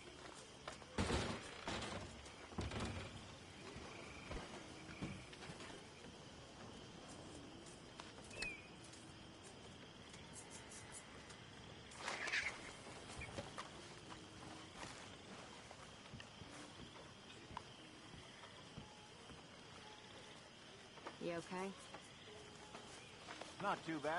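Footsteps crunch softly on grass and dirt.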